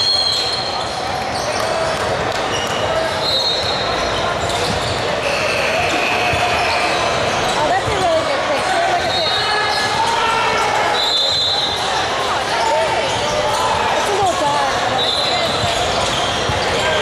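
Sneakers squeak sharply on a wooden floor now and then.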